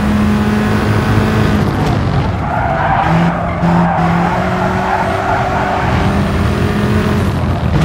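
A racing car engine roars loudly, its pitch rising and falling as it shifts gears.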